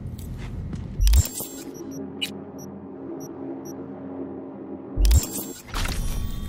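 A sharp electronic whoosh sounds twice.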